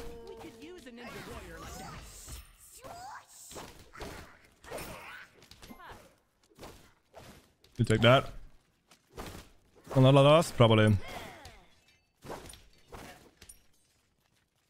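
Game weapons clash and hit in a fast fight.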